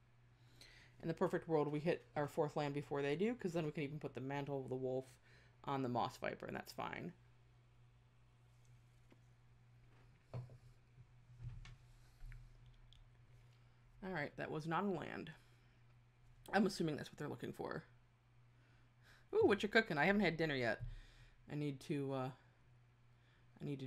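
A young woman talks with animation into a close microphone, in bursts with pauses.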